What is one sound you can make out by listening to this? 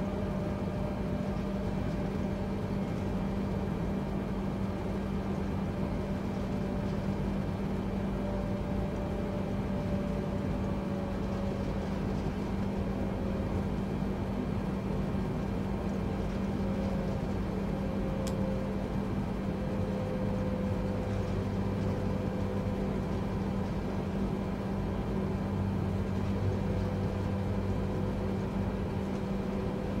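Aircraft wheels rumble over the runway.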